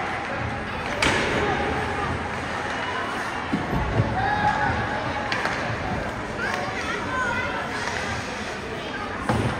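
A hockey stick smacks a puck with a sharp crack.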